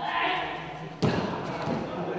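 A gymnast lands on a mat with a thud.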